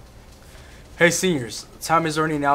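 A second young man speaks calmly close to a microphone.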